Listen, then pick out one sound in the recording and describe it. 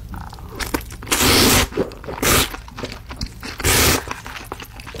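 A man loudly slurps noodles close to a microphone.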